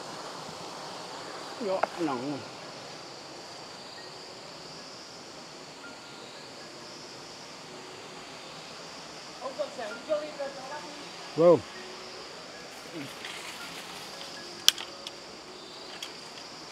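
A small waterfall splashes steadily in the distance.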